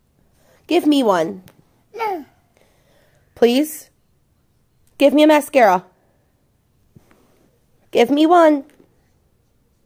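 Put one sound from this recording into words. A woman speaks softly and playfully to a toddler close by.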